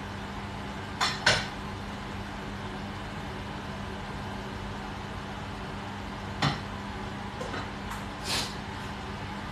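A pan clinks and clatters on a stove.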